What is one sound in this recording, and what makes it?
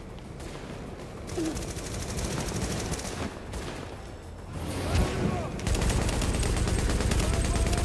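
Explosions of fire boom and crackle.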